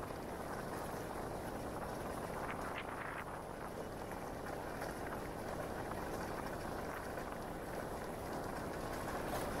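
A car engine hums steadily from inside a slowly moving vehicle.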